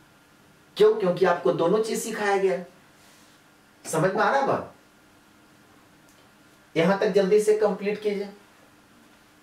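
A man speaks calmly and clearly in short phrases, close to a microphone.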